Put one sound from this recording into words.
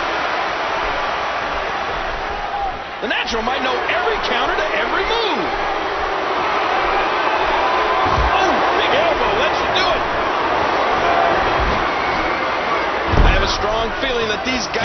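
A large crowd cheers and roars steadily in an arena.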